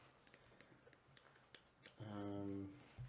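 Game cards click and rustle as hands handle them.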